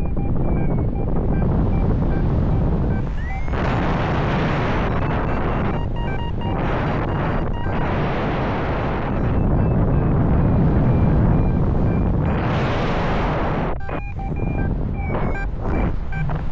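Strong wind rushes past at height, rising and falling in gusts.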